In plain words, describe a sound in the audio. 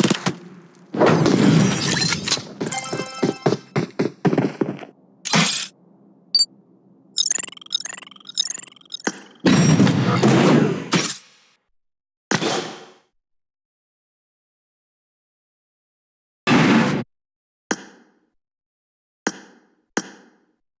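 Game menu sounds chime and whoosh.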